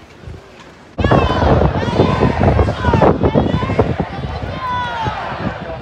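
A large crowd cheers and chatters loudly outdoors.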